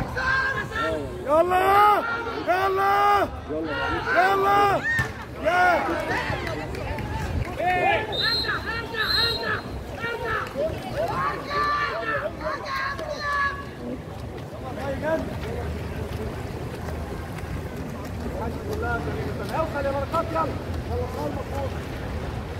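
Water splashes as swimmers thrash in a pool.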